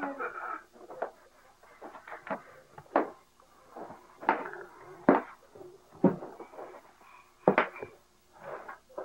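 A baby slaps a hand against a box with hollow thumps.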